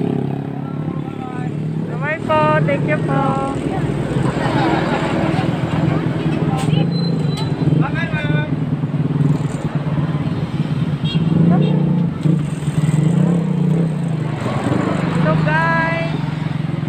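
Women talk and call out nearby with animation.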